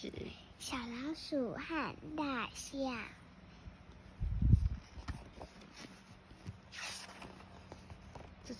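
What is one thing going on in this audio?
Book pages turn with a soft papery rustle.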